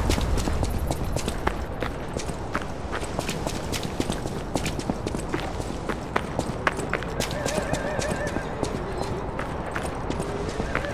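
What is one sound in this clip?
Quick footsteps clatter on wet cobblestones.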